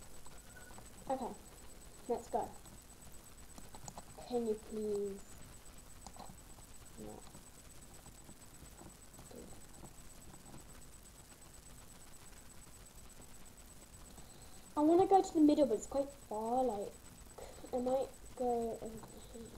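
A child speaks close to a microphone, in short animated bursts.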